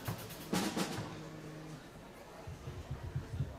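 A brass band begins to play in a large hall.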